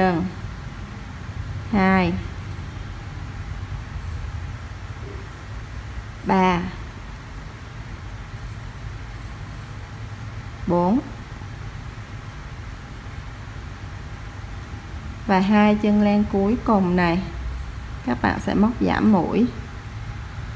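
A woman speaks in short, calm phrases close to a microphone.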